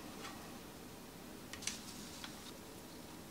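A fork scrapes and taps on a ceramic plate.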